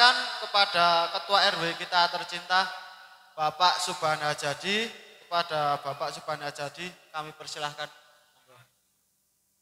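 A young man speaks with animation through a microphone over loudspeakers outdoors.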